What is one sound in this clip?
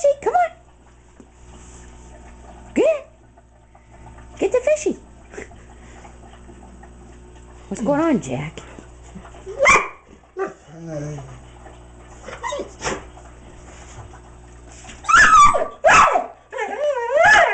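A dog whines and yelps in high, wavering cries.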